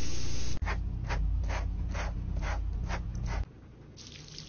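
A blow dryer roars up close.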